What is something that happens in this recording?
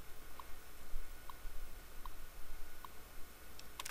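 A computer terminal ticks as it prints lines of text.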